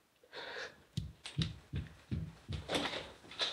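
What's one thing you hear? Footsteps thump across a floor.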